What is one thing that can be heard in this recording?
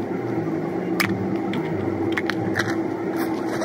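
A plastic container lid clicks open.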